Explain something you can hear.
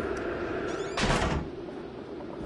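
A wooden door shuts with a heavy thud.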